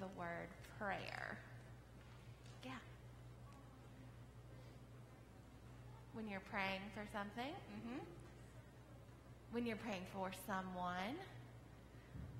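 A young woman speaks gently and clearly to children, in a softly echoing room.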